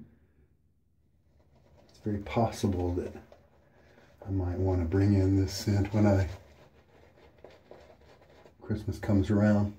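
A shaving brush swishes over a man's cheek.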